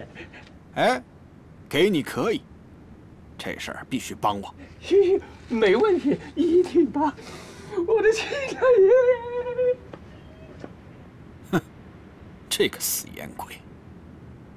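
A middle-aged man speaks close by in a low voice.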